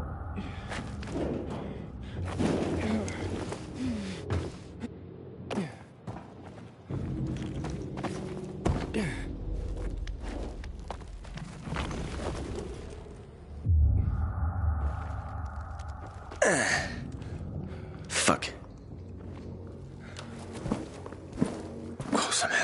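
Footsteps scuff over hard ground.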